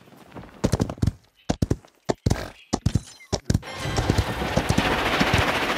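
Footsteps clatter quickly on hard ground.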